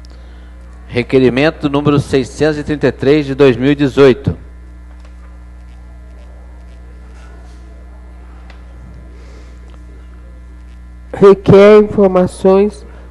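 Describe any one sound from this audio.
A man speaks loudly through a microphone in short bursts.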